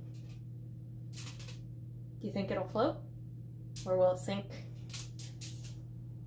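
Aluminium foil crinkles in a woman's hands.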